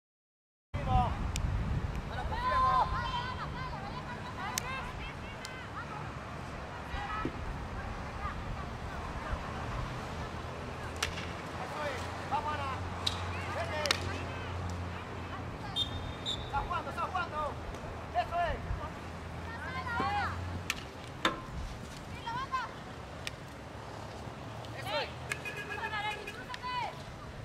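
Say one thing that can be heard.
Young women shout across an outdoor field.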